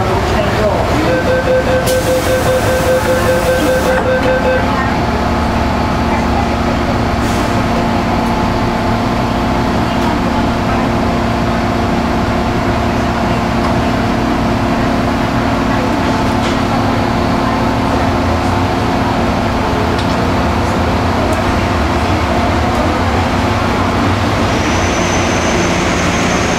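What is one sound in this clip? A subway train rumbles and whines steadily as it runs through a tunnel.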